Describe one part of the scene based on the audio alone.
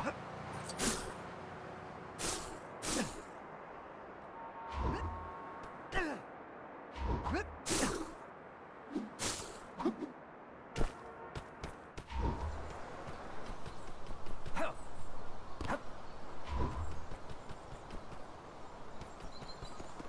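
Flames burst out with short whooshing roars.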